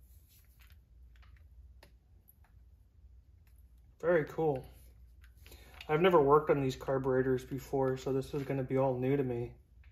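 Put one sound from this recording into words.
Metal parts clink softly as they are handled.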